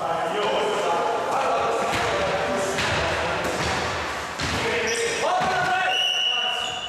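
Young men call out to each other in an echoing hall.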